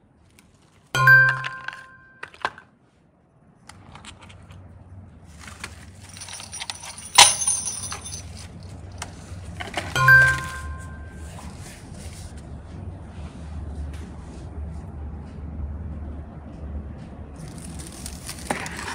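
Plastic toys clack softly as a hand picks them up.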